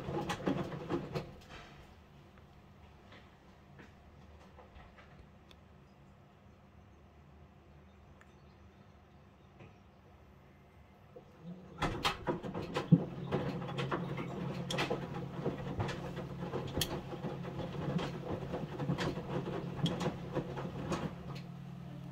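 A front-loading washing machine tumbles wet laundry in its drum, with thumps and sloshing.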